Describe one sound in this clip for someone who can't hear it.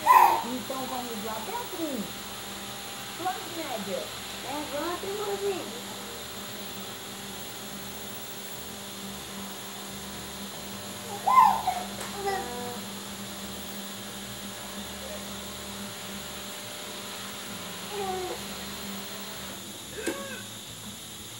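A baby coos and babbles nearby.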